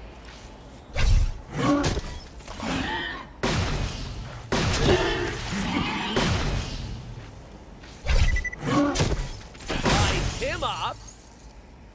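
Gunfire bangs in sharp bursts.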